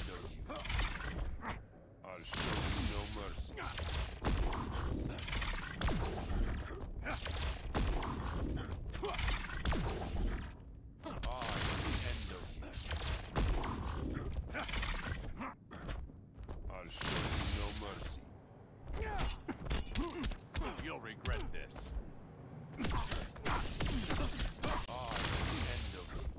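Energy blasts crackle and whoosh.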